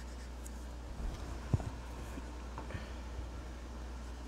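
A sheet of paper slides and bumps on a table.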